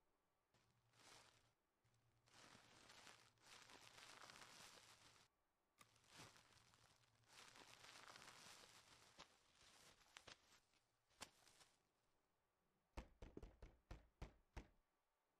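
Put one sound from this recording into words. Plastic bags rustle and crinkle up close.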